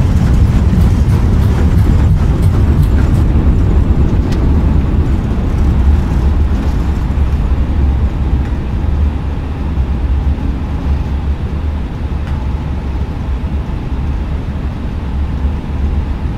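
An airliner's jet engines rumble as it rolls along a runway and slows.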